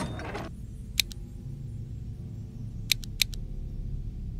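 Short, bright interface clicks sound a few times.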